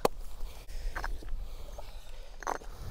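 A metal tool strikes stones with sharp knocks.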